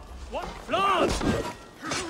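A man yells a warning.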